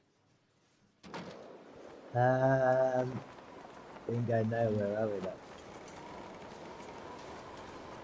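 Wind howls in a snowstorm.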